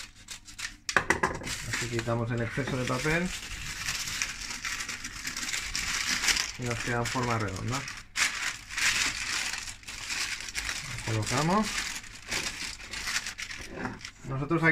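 Baking paper crinkles and rustles as it is pressed down.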